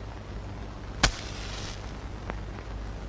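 A match strikes and flares.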